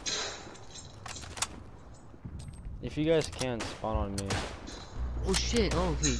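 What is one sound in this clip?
A bolt-action rifle is reloaded with a stripper clip, metal clicking.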